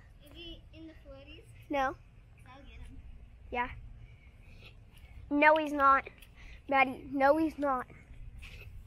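A young girl talks and calls out excitedly nearby.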